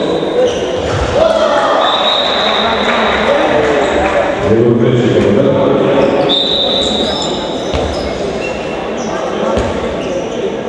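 A ball thumps on a hard floor, echoing in a large hall.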